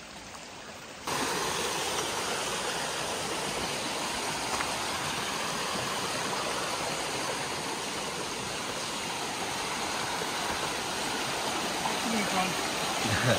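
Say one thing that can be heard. A creek rushes over rocks.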